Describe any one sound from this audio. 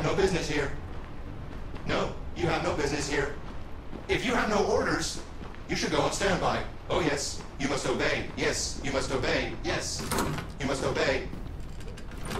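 A young woman speaks calmly and firmly.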